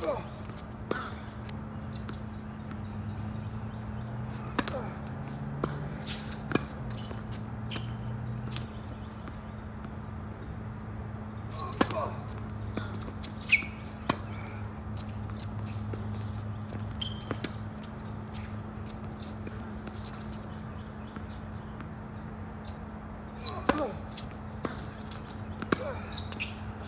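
Tennis balls thud off racquets in a steady rally outdoors.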